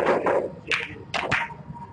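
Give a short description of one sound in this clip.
A cue ball is struck with a sharp click.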